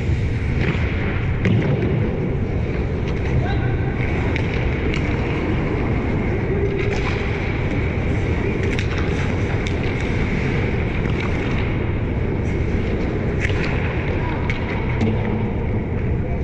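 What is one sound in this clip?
Hockey sticks click against pucks in a large echoing arena.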